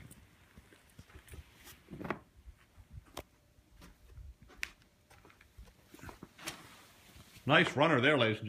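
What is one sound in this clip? A heavy woven rug rustles and flops softly as it is unrolled across a carpeted floor.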